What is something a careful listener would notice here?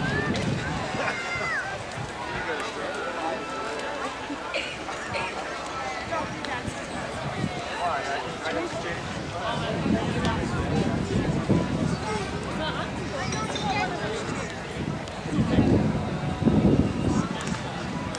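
A woman talks softly and cheerfully close by.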